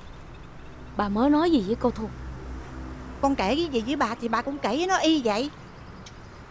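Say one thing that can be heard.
A middle-aged woman speaks with agitation close by.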